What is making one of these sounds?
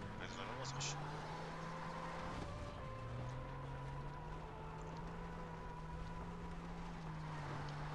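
Tyres rumble over a rough dirt track.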